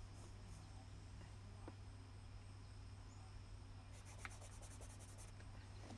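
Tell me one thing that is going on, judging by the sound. A brush dabs and scrapes softly on paper.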